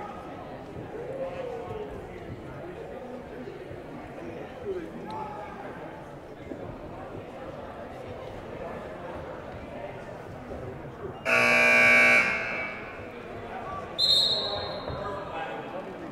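Many people talk and murmur in a large echoing gym.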